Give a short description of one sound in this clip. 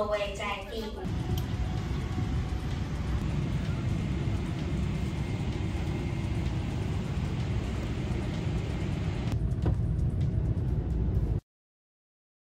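A jet engine rumbles steadily from inside an airplane cabin.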